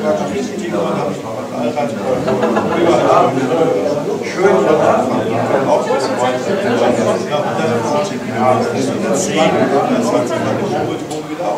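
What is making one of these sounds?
A middle-aged man talks with animation close by.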